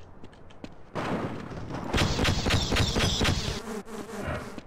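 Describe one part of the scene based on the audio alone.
An explosion blasts through a wall with a loud rumbling roar.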